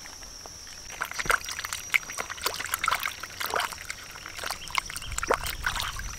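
Hands splash and rub chillies in shallow water.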